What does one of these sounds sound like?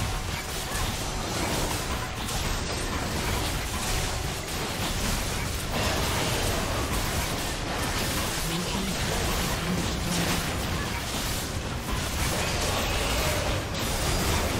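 Magic blasts and weapon hits crackle and boom in a busy battle.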